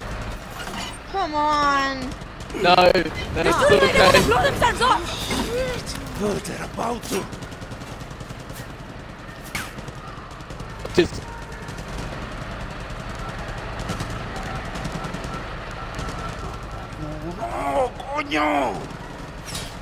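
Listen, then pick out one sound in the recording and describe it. A young man grunts and speaks urgently.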